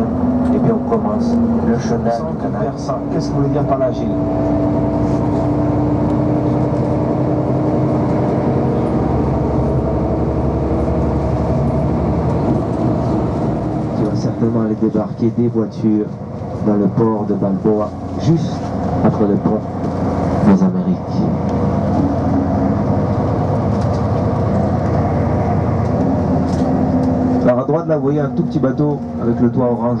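A vehicle's engine hums steadily as it drives along.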